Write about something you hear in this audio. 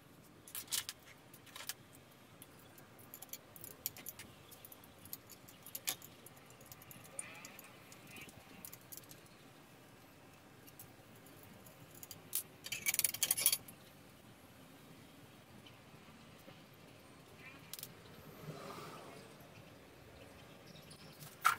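Metal tools clink and scrape against a motorbike's parts.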